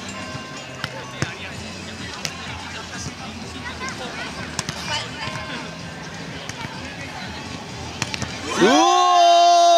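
A crowd of young people calls out in the distance outdoors.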